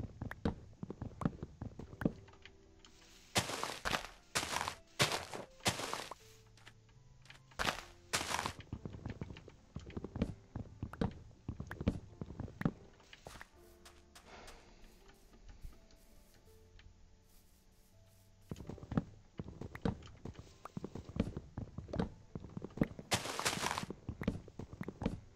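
Leaves rustle and crunch as they break.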